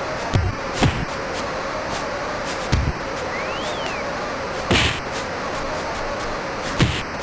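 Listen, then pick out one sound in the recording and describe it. A crowd roars steadily in a video game.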